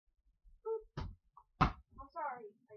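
A ball thumps against a surface.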